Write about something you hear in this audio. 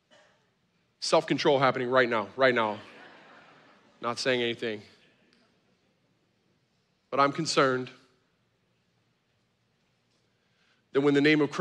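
A man speaks with emphasis into a microphone, heard over loudspeakers in a large hall, with pauses between phrases.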